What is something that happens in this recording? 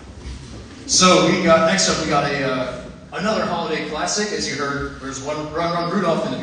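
A group of young men sing in harmony.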